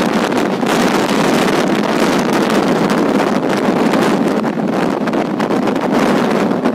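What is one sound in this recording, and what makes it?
Wind rushes loudly past an open train window.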